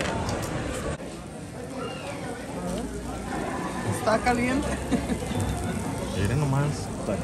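People chat at nearby tables.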